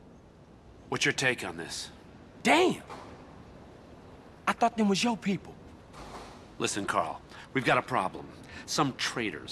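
A man speaks in a low, tense voice.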